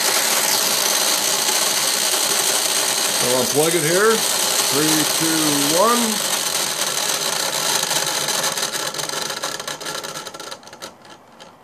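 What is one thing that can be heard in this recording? Plastic gears spin with a steady, fast whirring hum.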